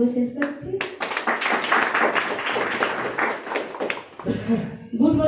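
A crowd applauds in a room.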